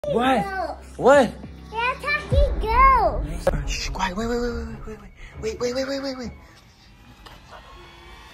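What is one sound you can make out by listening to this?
A small child talks in a high voice.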